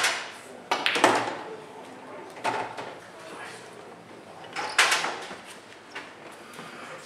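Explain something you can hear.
Billiard balls clack together and thud against the cushions.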